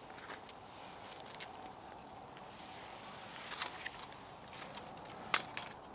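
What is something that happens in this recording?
Hands rustle dry leaves and bark.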